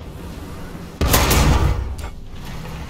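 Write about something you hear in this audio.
A tank cannon fires with a loud boom that rolls away.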